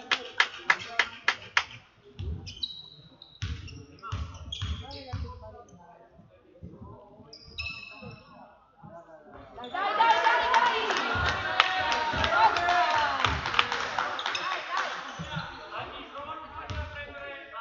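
A basketball bounces on a hard gym floor.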